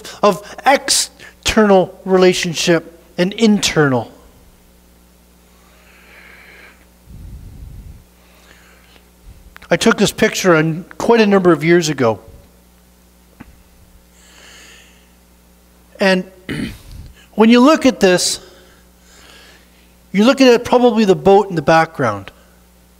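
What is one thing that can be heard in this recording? A middle-aged man speaks with animation in a room with some echo.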